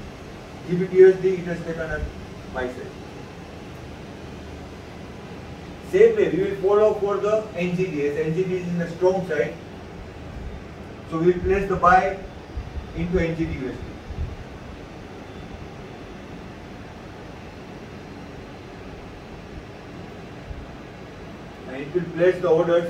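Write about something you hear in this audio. A man speaks calmly and clearly, close by, with pauses.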